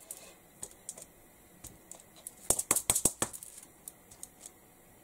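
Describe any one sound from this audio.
Foil crinkles under hands.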